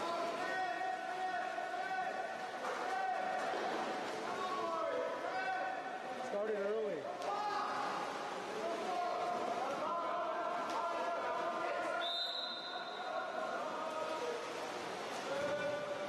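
Swimmers splash and churn the water.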